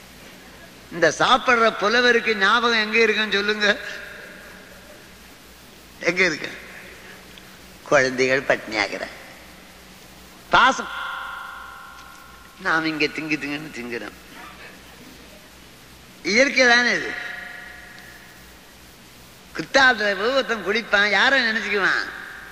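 An elderly man chants in phrases, with a ringing echo after each one.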